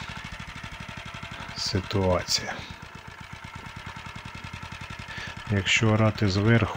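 A small tiller engine putters steadily nearby.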